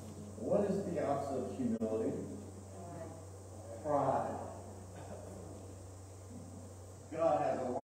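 A middle-aged man speaks calmly through a microphone in a large room.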